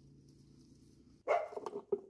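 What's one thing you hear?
Salt pours from a plastic jar onto shredded cabbage.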